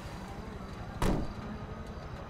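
A truck door slams shut.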